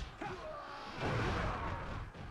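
An explosion bursts with a deep rumble.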